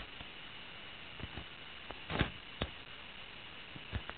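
A crackling electric zap sounds.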